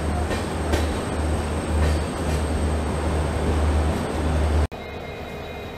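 A train rumbles loudly as it rolls slowly along a platform.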